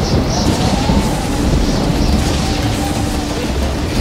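A motorcycle engine rumbles nearby.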